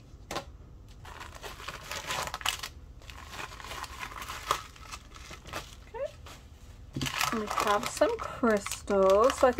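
Small hard beads clink together inside a plastic bag.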